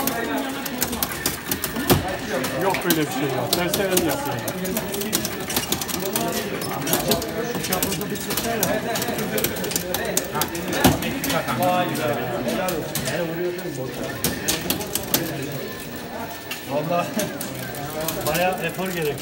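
Buttons and joysticks click and rattle rapidly on an arcade machine.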